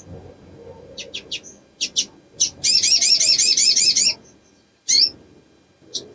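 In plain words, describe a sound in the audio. A small bird chirps sharply in short bursts.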